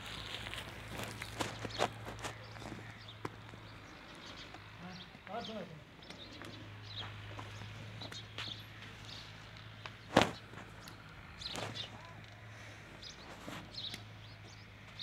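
Cattle shuffle their hooves on dry dirt ground.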